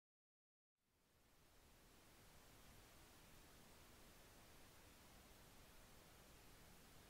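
Television static hisses steadily.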